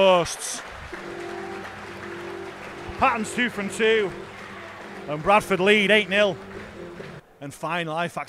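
A crowd cheers and applauds in an open stadium.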